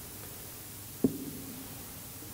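A man sets an object down on a table with a single sharp knock that rings briefly.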